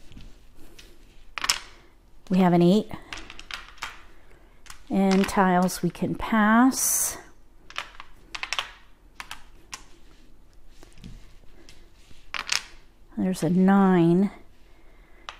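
Plastic tiles click and clack against each other on a table.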